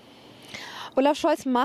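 A young woman starts speaking into a microphone.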